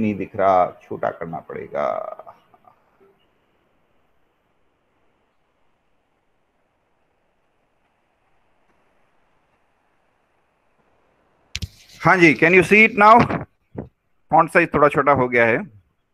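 An elderly man speaks calmly over an online call, explaining at a steady pace.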